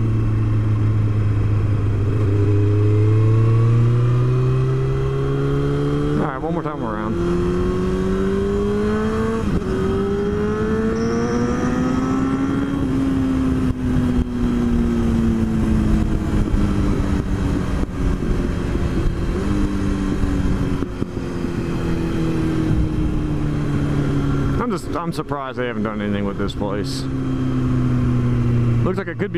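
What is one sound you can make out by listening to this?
A motorcycle engine revs up and down, rising and falling as it shifts through gears.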